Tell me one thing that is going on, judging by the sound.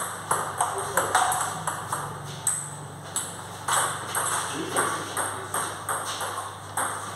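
Table tennis balls tap quickly against paddles and tables in an echoing hall.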